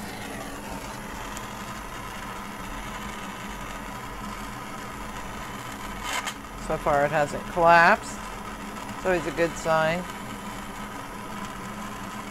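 A gas torch hisses and roars steadily.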